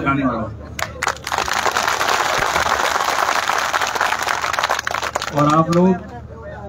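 A large crowd cheers and claps loudly.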